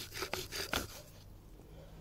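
A wooden bow drill spindle grinds and squeaks against a wooden board in quick back-and-forth strokes.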